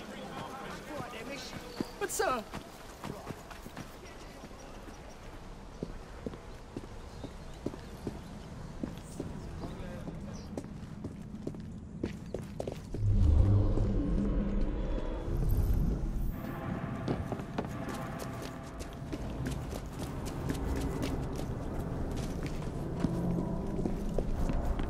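Footsteps run and walk on stone paving.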